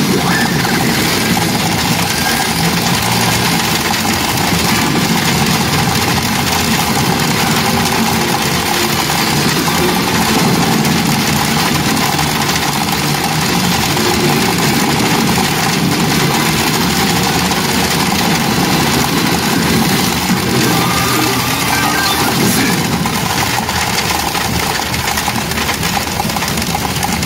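A gaming machine plays loud music and dramatic effects through its speakers.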